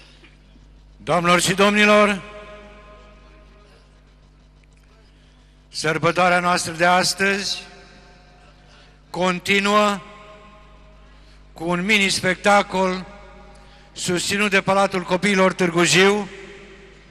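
A man speaks loudly through a loudspeaker in short bursts, echoing outdoors.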